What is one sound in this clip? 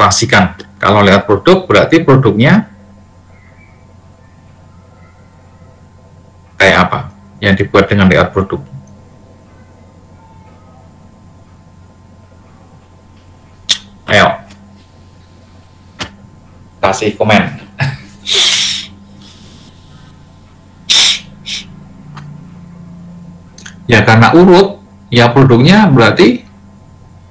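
A man speaks over an online call in short bursts with pauses.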